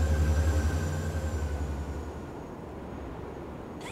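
A flying craft's engine roars overhead.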